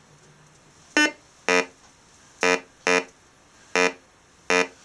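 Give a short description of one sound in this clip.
A metal detector gives short, repeated electronic beeps.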